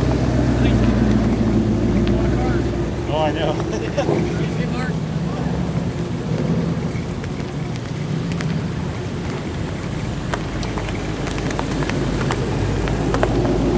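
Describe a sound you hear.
A sports car engine rumbles deeply as the car rolls slowly past close by.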